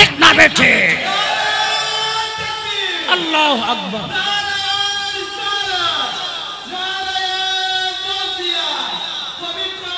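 A man chants in a long, drawn-out melodic voice through a microphone.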